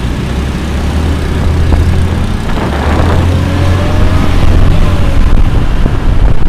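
A scooter engine hums steadily up close.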